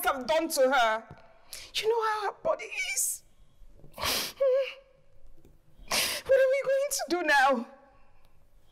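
A woman speaks close by in a tearful, pleading voice.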